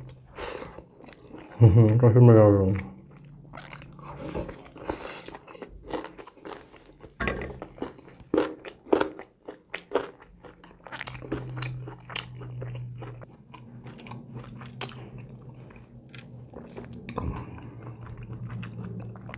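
Fingers squish and mix food in a plate.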